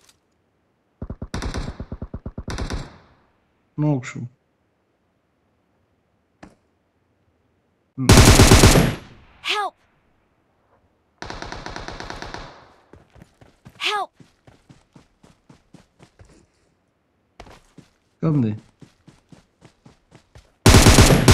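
An automatic rifle fires in short rapid bursts.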